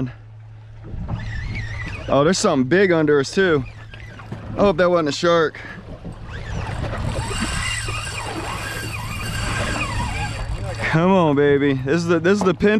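Water splashes and rushes against a moving boat's hull.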